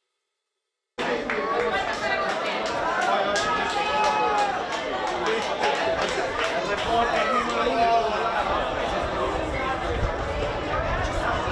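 Children shout and cheer excitedly outdoors.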